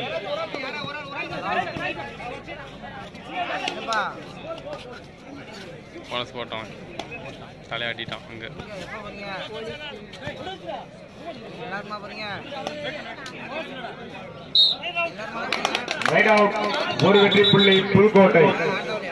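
A large crowd chatters and shouts from all around.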